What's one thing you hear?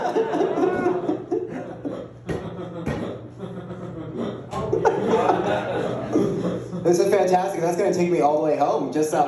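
A young man talks with animation into a microphone in a room that echoes.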